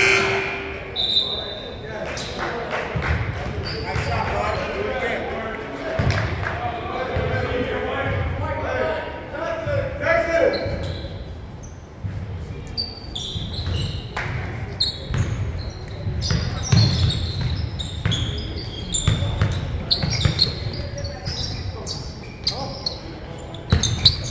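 A basketball thumps on the floor.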